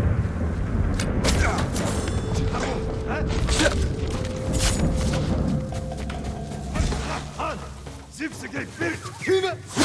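Swords clash and strike sharply in a fight.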